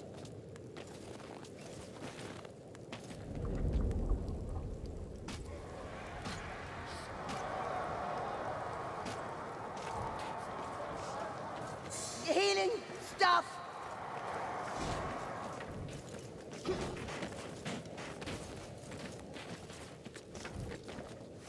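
Footsteps crunch on snow and wooden planks.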